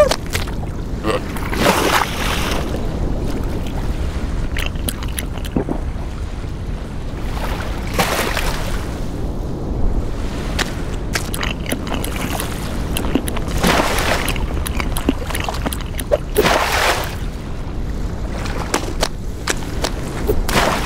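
Snow rustles and scrapes as a small animal burrows quickly beneath it.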